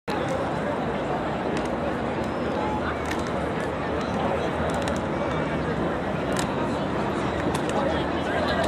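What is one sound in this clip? A crowd of people chatters outdoors in a wide open space.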